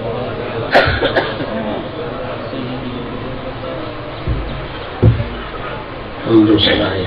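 A man speaks slowly and calmly into a microphone, heard through loudspeakers.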